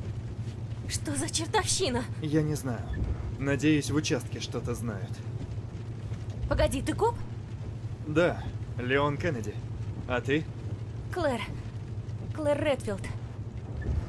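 A young woman speaks in surprise, close by.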